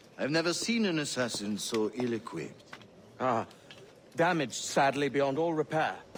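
A second man answers in a firm voice.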